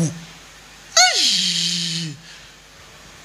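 A man lets out a long, drawn-out shout that falls in pitch.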